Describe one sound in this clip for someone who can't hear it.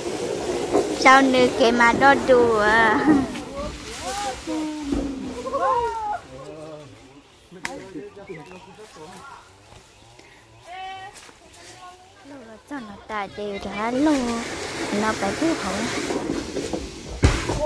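Young women talk and call out nearby in lively voices.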